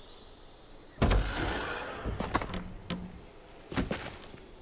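A car door opens with a creak and a thud.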